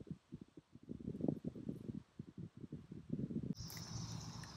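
Footsteps crunch through dry undergrowth.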